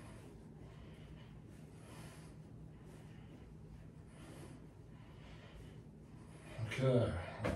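A man breathes slowly and softly in and out.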